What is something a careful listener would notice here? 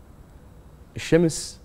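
An older man speaks calmly into a microphone.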